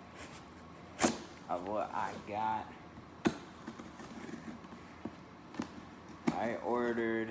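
A tape gun clicks and snaps against cardboard.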